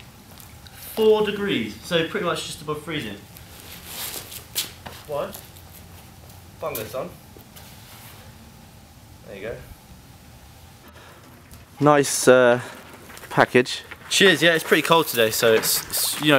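A second young man speaks calmly in reply.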